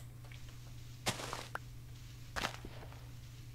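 A game block crunches as it is dug out.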